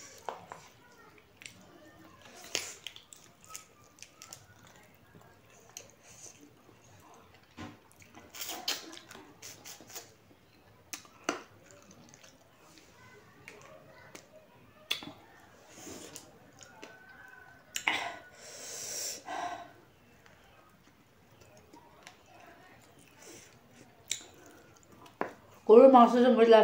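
A woman chews and smacks her lips close by.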